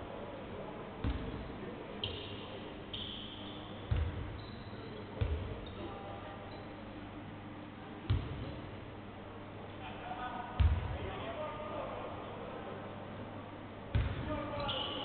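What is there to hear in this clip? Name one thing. A basketball bounces with hollow thuds in a large echoing gym.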